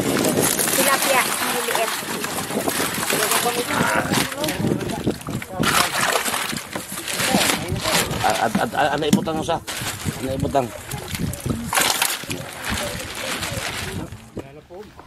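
Plastic sacks rustle and crinkle as they are pulled open.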